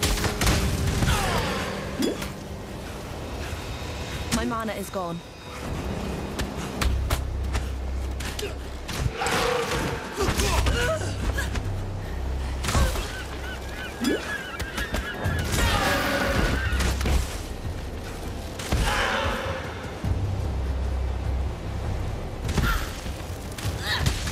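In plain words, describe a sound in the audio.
Creatures thud and clash in a fight.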